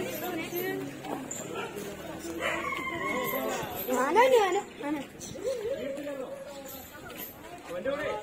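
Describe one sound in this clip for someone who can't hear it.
A small crowd of men and women talk and call out nearby.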